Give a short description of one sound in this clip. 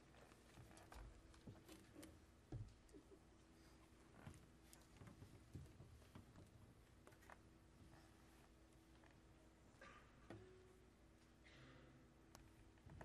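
A piano plays quiet, sparse notes.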